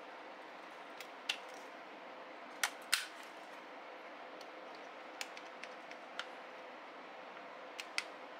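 Plastic clips and buckles click and snap as they are fastened and unfastened.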